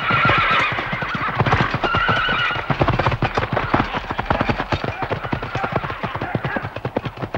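Horses' hooves thud rapidly on dry ground.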